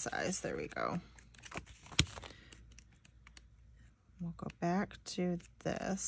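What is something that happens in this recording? Paper pages rustle as they are flipped over.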